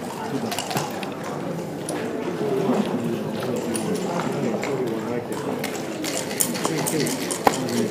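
Plastic checkers click against a wooden board.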